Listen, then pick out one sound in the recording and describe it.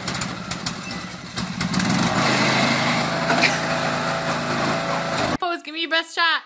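A lawn mower engine rumbles steadily.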